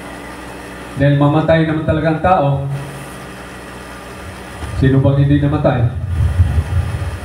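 A man speaks loudly into a microphone through a loudspeaker, in an echoing room.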